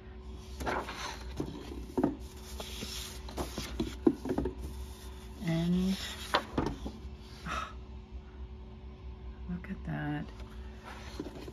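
Sheets of paper rustle and flap as they are handled.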